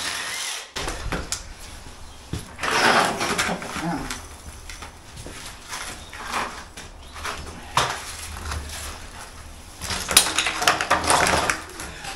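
Metal window frame parts clatter and bang as they are pulled loose.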